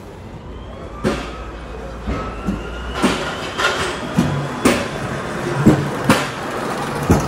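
An electric pallet truck whirs as it rolls across a hard floor.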